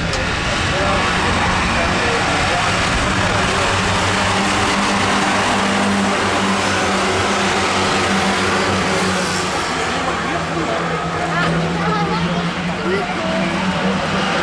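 Racing car engines roar and drone around a track outdoors.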